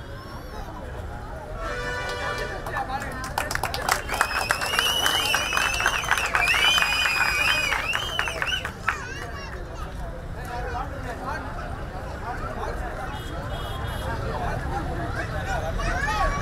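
A man speaks with animation through a microphone and loudspeakers outdoors.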